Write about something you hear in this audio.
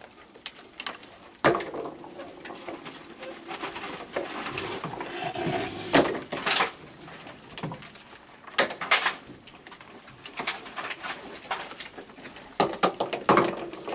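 A person scatters dry food that patters onto wooden boards.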